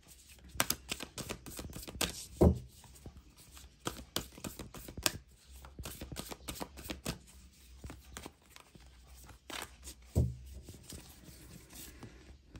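Playing cards shuffle with soft, rapid flicking and clicking.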